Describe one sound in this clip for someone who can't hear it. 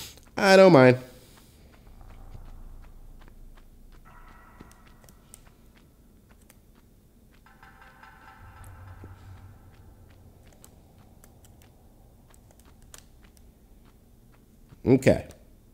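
Footsteps patter quickly on stone and wooden planks.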